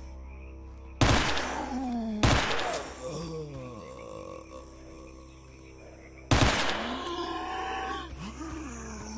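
A heavy gun fires loud blasts that echo away.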